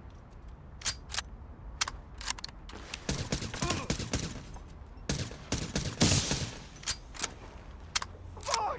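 Gunfire cracks in short, sharp bursts.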